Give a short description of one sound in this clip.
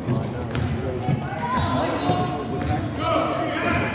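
A basketball bounces on a hardwood court in an echoing gym.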